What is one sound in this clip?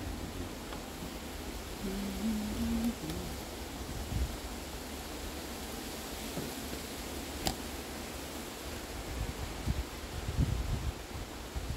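Stiff fabric rustles and crinkles as it is handled.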